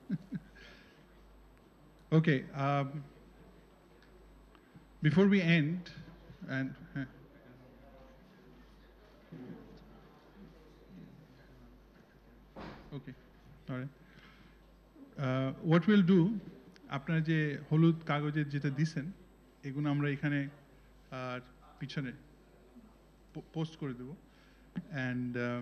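A middle-aged man speaks with animation into a microphone, heard through a loudspeaker.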